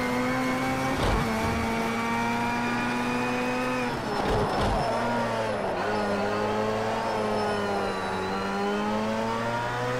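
A racing car engine roars steadily, its pitch shifting as it changes gear and slows for corners.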